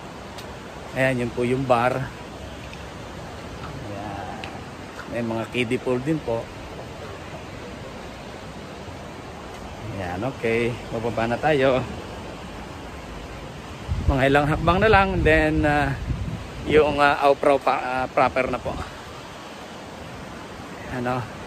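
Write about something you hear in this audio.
A man talks casually close by, in short bursts.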